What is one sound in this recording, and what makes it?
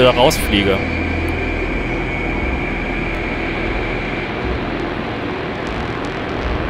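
A spaceship engine drones steadily in a video game.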